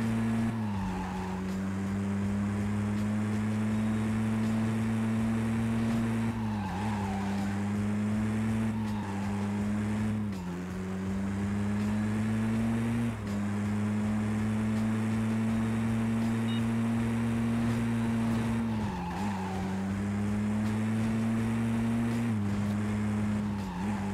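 A racing car engine roars steadily, dropping in pitch with each gear change.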